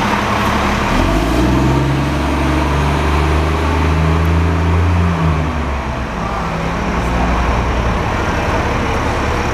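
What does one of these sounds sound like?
A bus engine revs up as the bus pulls away and fades.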